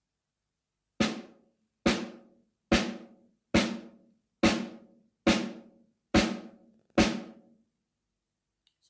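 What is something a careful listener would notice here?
A drummer strikes a cymbal in an even beat, each hit ringing out.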